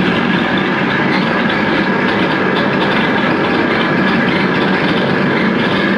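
Electronic keyboard sounds drone along.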